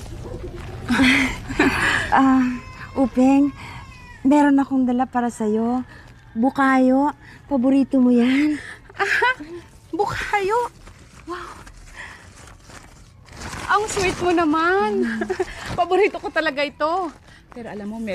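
A young woman speaks softly and warmly up close.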